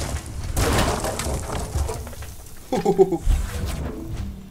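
An axe strikes and shatters ice with a sharp crack.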